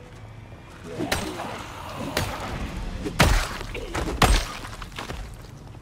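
Blows strike with sharp thuds in a fight.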